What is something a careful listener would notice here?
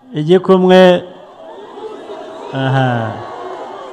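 A crowd cheers in the distance.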